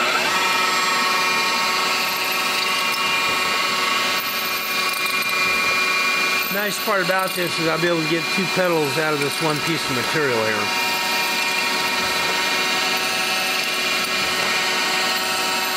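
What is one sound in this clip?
A milling machine whirs steadily as its cutter grinds into metal.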